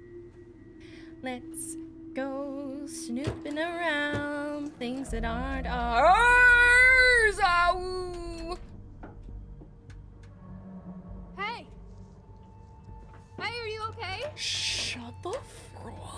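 A young woman talks and exclaims with animation close to a microphone.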